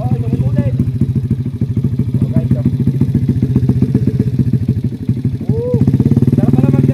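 A small motorcycle engine idles with a rapid, throbbing putter close by.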